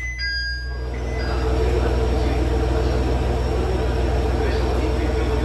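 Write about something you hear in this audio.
A train hums loudly at a station platform.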